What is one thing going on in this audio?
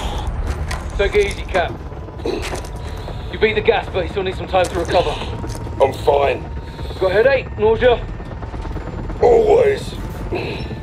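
Men speak calmly over headset radios.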